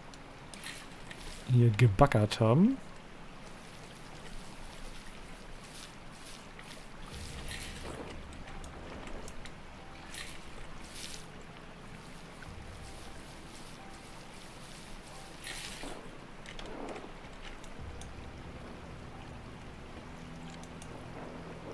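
Water sloshes and swirls in a shallow pan.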